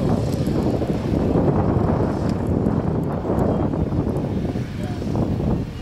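Tyres screech on the track.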